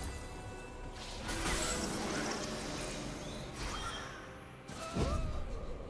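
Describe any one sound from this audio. Magic spells whoosh and crackle in a fast fantasy battle.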